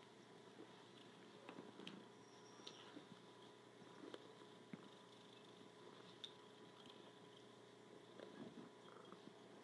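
A hand rubs a cat's fur softly.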